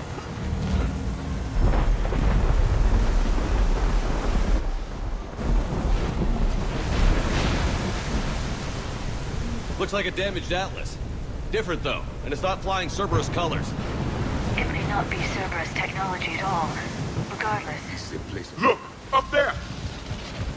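Stormy wind and rain roar outdoors.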